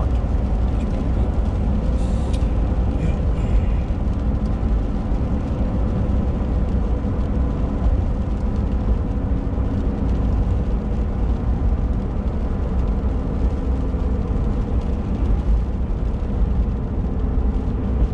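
Tyres rumble on a wet road.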